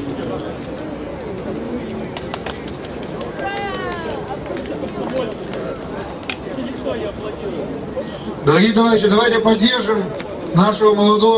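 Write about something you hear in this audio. A man speaks loudly through a microphone and loudspeakers outdoors.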